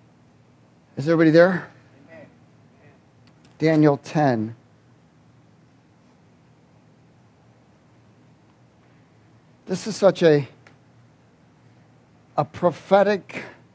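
A man reads aloud slowly through a microphone, with long pauses.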